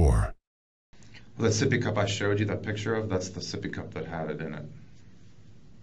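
A man speaks calmly, heard through a distant room microphone.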